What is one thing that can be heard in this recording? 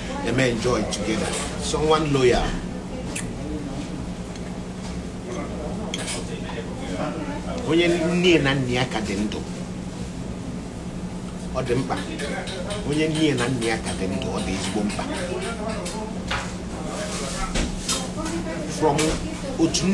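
A man talks casually and close up, in bursts with pauses.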